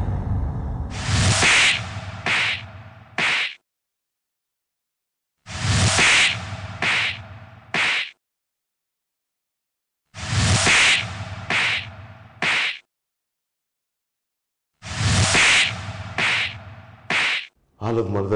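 Loud slaps strike a face again and again.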